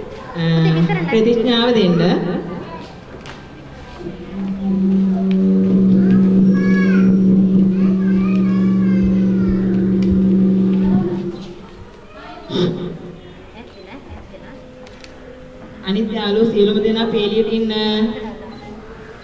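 A woman chants in a slow, drawn-out voice.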